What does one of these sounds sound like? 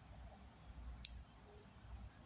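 Nail clippers snap sharply as toenails are cut.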